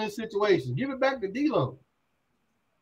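A man speaks with animation through a microphone on an online call.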